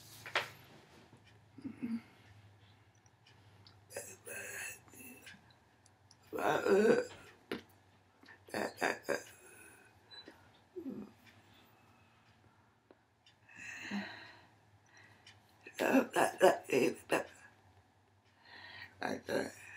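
An elderly woman talks with animation, close by.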